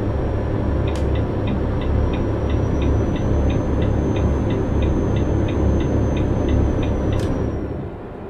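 A turn signal ticks rapidly and evenly.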